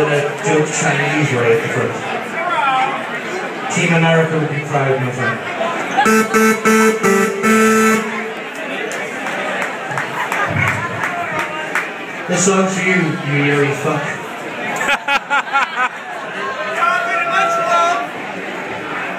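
A man sings into a microphone over the band.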